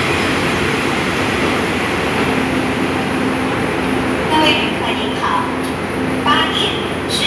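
A train rumbles along the tracks and pulls away.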